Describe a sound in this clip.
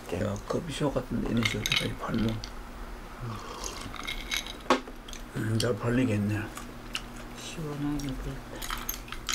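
An elderly man talks casually nearby.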